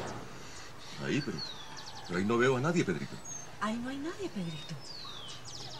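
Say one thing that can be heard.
A woman talks quietly outdoors.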